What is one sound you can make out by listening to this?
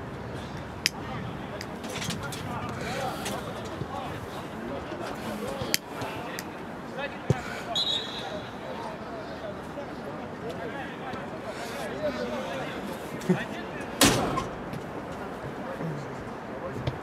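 Men shout to each other across an outdoor field.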